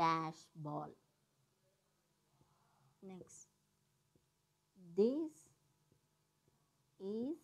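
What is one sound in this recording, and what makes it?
A woman speaks slowly and clearly in short phrases nearby.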